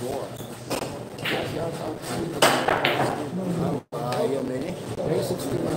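Pool balls knock together.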